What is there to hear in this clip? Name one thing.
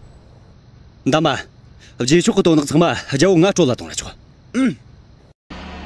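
A man speaks forcefully to a young man.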